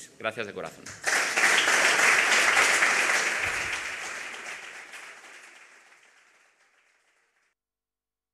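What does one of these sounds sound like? An audience applauds loudly, then the applause fades away.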